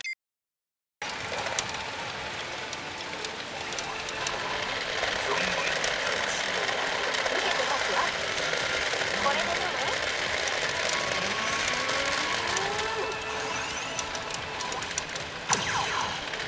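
A pachinko machine plays loud music and sound effects.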